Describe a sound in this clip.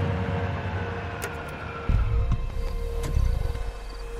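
A car door clunks open.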